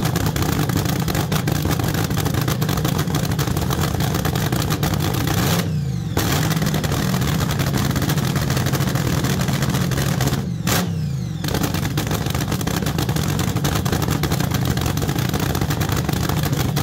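A dragster engine rumbles loudly and roughly at idle close by.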